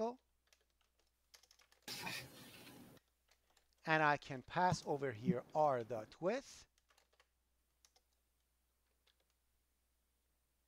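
Keys on a keyboard click softly.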